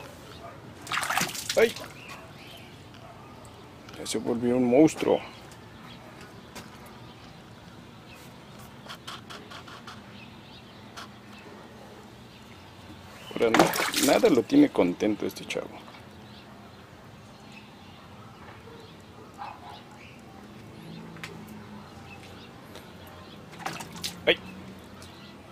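Water splashes and sloshes as an animal thrashes in a tub.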